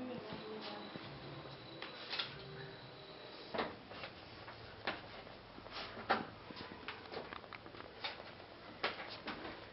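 A metal stepladder clanks and creaks as a person shifts on it.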